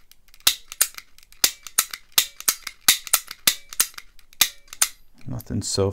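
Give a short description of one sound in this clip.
Metal picks click sharply inside a lock.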